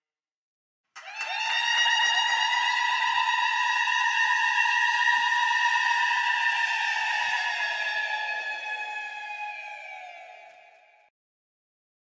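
A woman ululates in a long, high, shrill trill that slowly fades.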